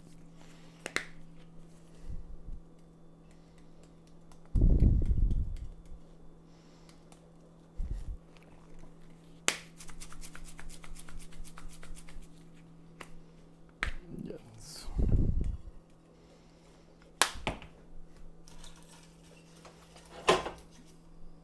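Dishes and pots clink and clatter in a sink.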